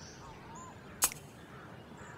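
A short click sounds.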